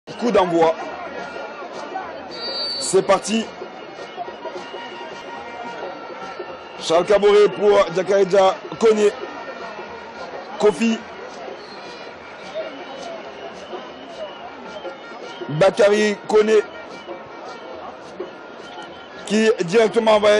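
A stadium crowd murmurs and chants steadily in the background.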